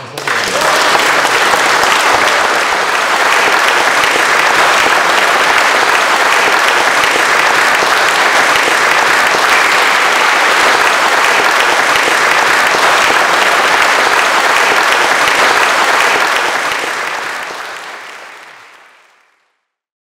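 A large audience applauds in an echoing hall, then the applause fades away.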